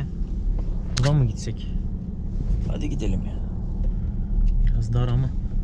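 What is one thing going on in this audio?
A car engine rumbles steadily from inside the moving car.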